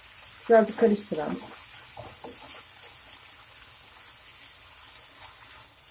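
A wooden spatula scrapes and stirs meat in a frying pan.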